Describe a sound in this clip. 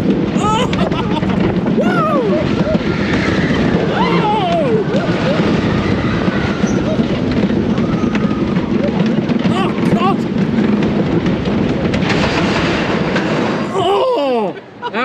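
A wooden roller coaster rattles and roars loudly along its track.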